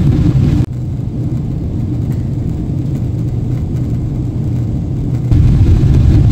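A jet airliner roars overhead.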